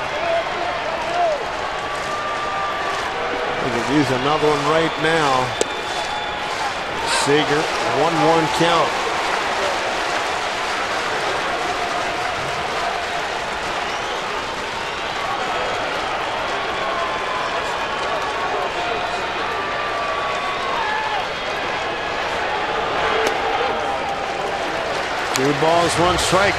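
A large crowd murmurs steadily in an open stadium.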